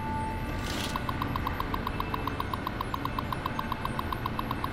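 A computer terminal chatters with quick, even ticks as text prints out.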